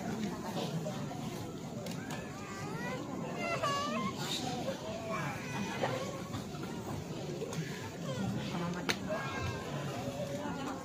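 An elderly man sings slowly into a microphone, heard through a loudspeaker.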